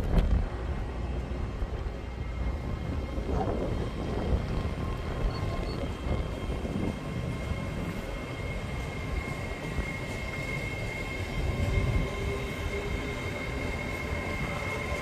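A passenger train rumbles past close by, its wheels clattering over the rails.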